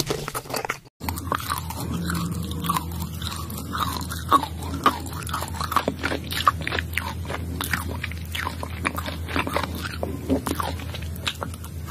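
A woman crunches on crisp food close up.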